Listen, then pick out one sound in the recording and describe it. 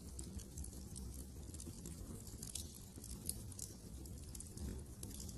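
A fire crackles and pops in a hearth.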